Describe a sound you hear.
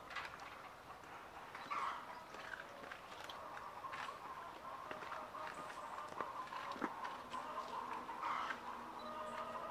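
Pigs chew and munch noisily at a feeder.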